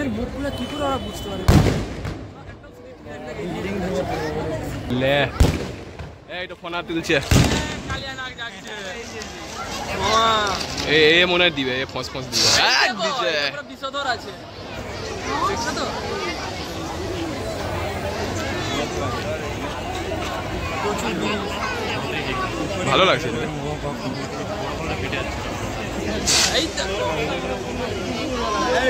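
A crowd chatters and cheers.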